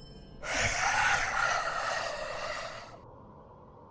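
A bright chime rings out and fades.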